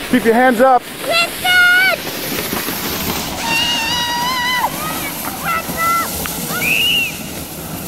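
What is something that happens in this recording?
Young children shout and squeal excitedly outdoors.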